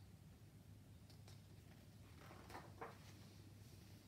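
A paper page rustles as it is turned.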